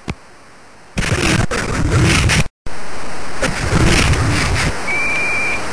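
Football players crash together in a tackle with a loud, noisy video game sound.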